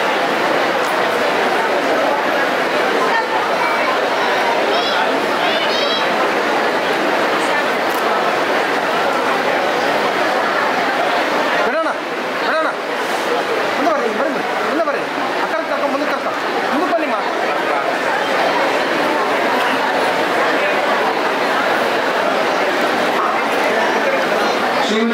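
A crowd of men and women chatter close by.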